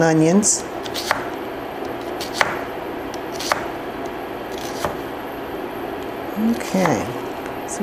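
A knife chops through an onion on a cutting board.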